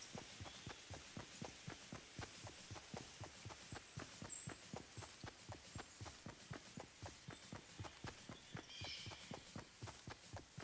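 Quick footsteps rustle through grass.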